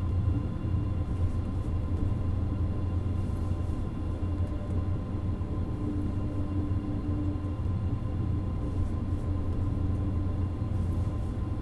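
A train engine hums and rumbles steadily as the train rolls along the tracks.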